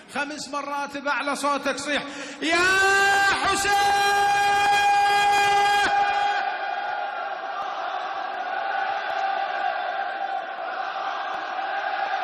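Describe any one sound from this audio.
A large crowd of men chants loudly in unison.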